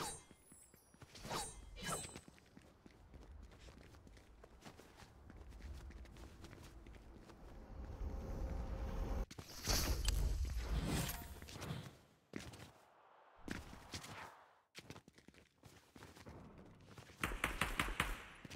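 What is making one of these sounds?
Footsteps crunch on snow as a game character runs.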